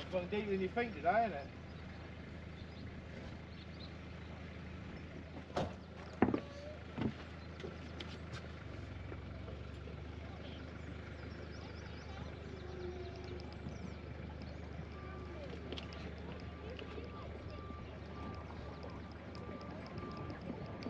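A boat engine idles with a steady low hum.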